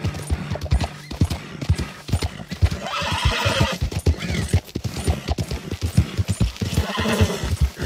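Horse hooves clop steadily on a rocky trail.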